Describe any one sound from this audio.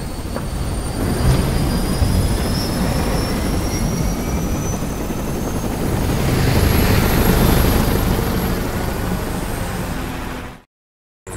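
Helicopter rotors thump loudly overhead.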